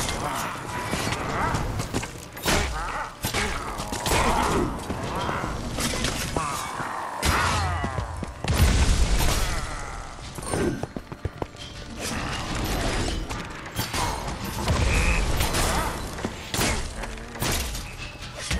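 Game weapons fire and blast repeatedly.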